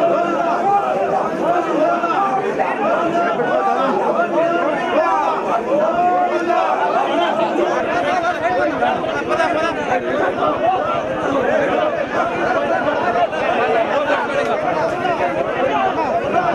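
A large crowd of men shouts and cheers loudly all around.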